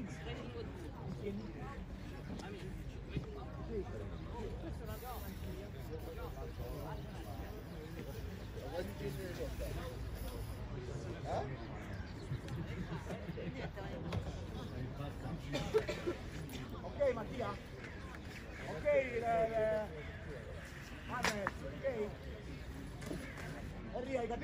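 Young men talk and call out across an open pitch, heard from a distance.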